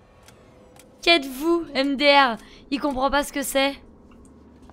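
A young woman talks and laughs close to a microphone.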